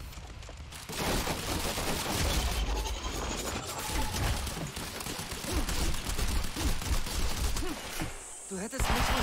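A turret fires rapid bursts of gunshots.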